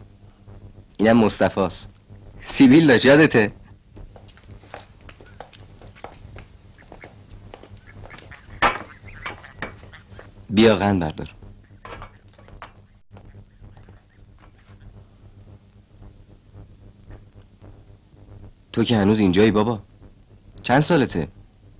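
Men speak calmly.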